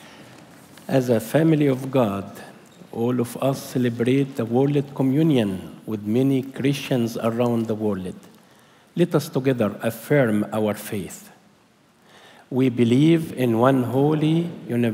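A man speaks calmly and clearly through a microphone in a large echoing hall.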